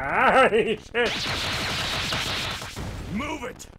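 A burst of noisy crashing erupts, as of an explosion.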